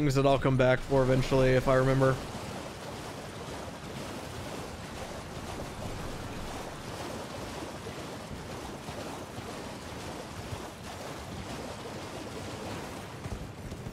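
Horse hooves splash through shallow water.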